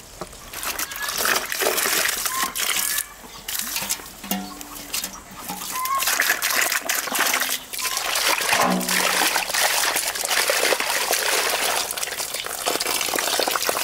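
Water pours and splashes from a hose.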